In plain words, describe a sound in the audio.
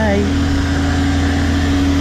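A truck engine idles nearby.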